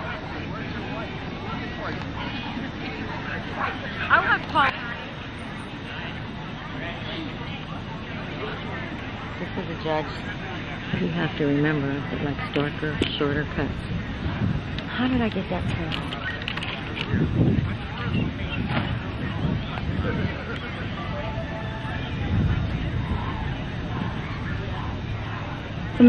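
Men and women in a crowd chat in the background outdoors.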